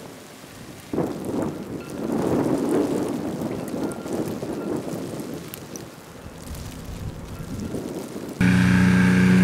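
Wind gusts outdoors in a snowstorm.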